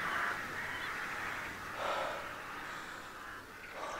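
An elderly man speaks hoarsely, close by.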